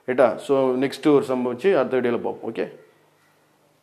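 A man speaks clearly and steadily, close to a microphone.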